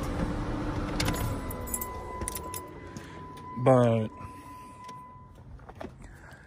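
A car's door-open warning chime rings steadily.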